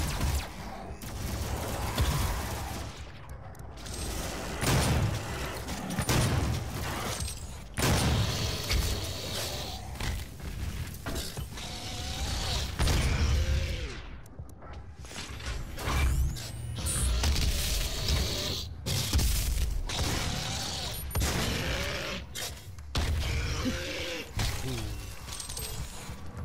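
Monsters growl and shriek.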